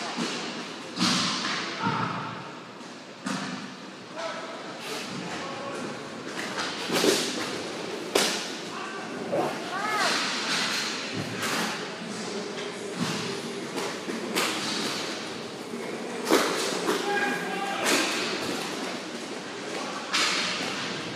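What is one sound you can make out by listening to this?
Sticks and a ball clack sharply, echoing in a large hall.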